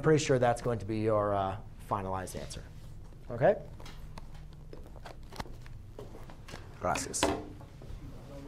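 A man speaks calmly and clearly close by, explaining.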